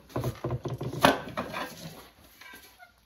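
A blade shaves wood in quick scraping strokes.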